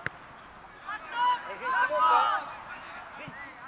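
Young boys shout together in a loud cheer outdoors.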